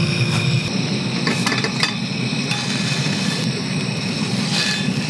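A metal fork scrapes lightly against a pan.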